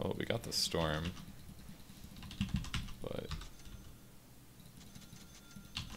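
Game sound effects chime and click.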